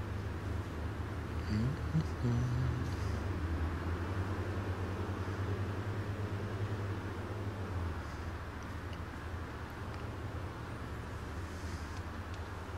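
A bus engine hums with a steady low drone.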